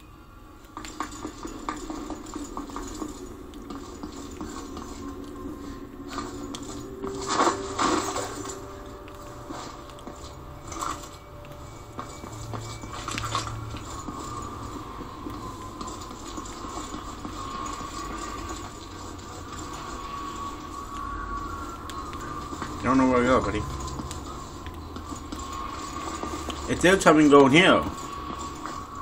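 A video game's sound effects play through a television speaker, with occasional loud bursts.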